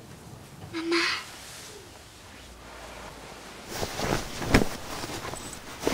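Bedsheets rustle as a person moves on a bed.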